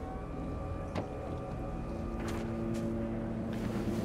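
A car trunk lid creaks open.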